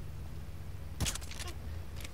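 A silenced pistol fires once with a short, sharp thud.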